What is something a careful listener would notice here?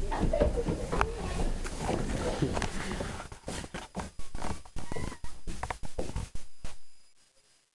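Footsteps thud on wooden steps.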